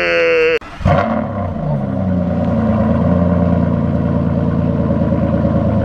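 A sports car engine idles with a deep, steady rumble close by.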